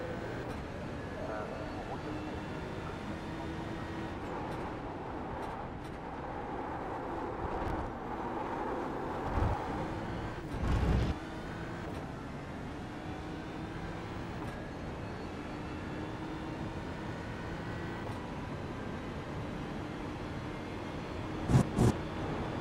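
A racing car engine roars and changes pitch as the car shifts gears.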